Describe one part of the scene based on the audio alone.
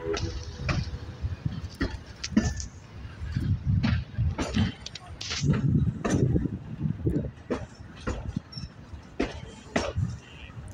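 A train rumbles along the tracks with irregular clanks and knocks.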